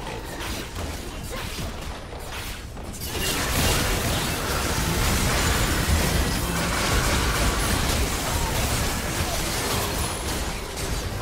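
Game spell effects and attacks crackle and blast in a busy fight.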